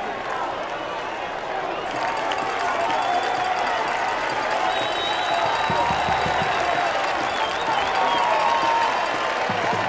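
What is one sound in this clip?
A large crowd chatters and murmurs outdoors in the distance.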